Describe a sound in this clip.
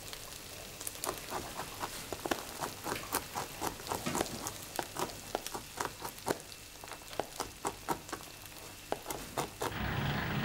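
A knife chops nuts on a board with quick taps.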